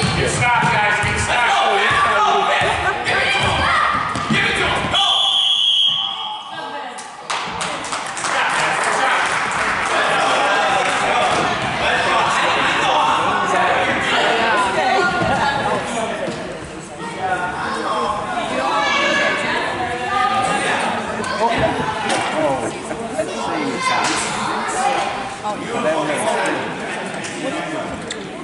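Children shout and chatter in a large echoing hall.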